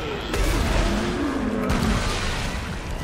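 Flames burst and roar close by.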